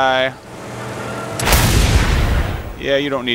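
Flames roar from a flamethrower.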